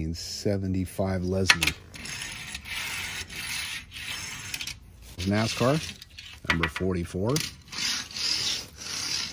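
A small toy car clicks down onto a hard, smooth surface.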